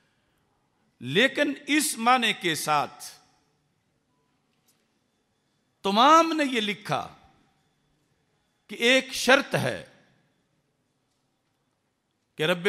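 A middle-aged man speaks into a microphone in bursts, with long pauses.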